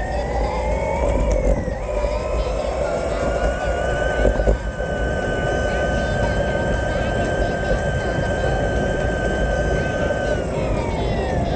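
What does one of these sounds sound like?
Wind buffets the microphone steadily while riding outdoors.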